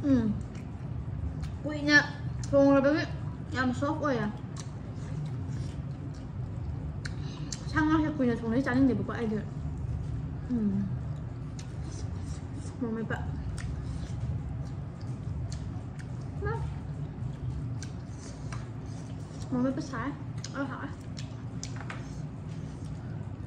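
A young woman eats, chewing and smacking close to the microphone.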